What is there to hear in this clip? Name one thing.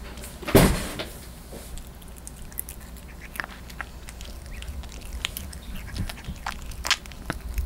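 A puppy chews and crunches on dry food close by.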